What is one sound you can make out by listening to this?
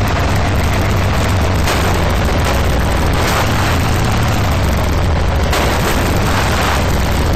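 An all-terrain buggy's engine roars while driving.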